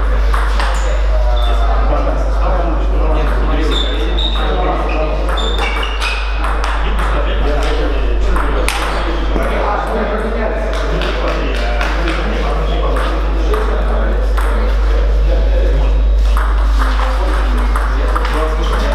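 Several men chat in the background in an echoing hall.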